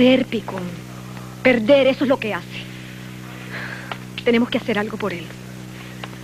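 A woman speaks with feeling, close by.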